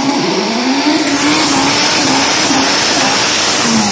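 Car tyres squeal and hiss in a burnout.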